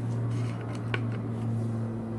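A wall switch clicks once.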